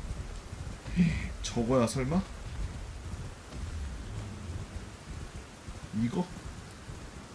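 A man speaks briefly and casually into a nearby microphone.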